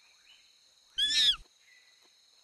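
A monkey lets out a loud, sharp chattering screech.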